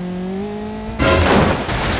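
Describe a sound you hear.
A car crashes into a barrier with a loud bang.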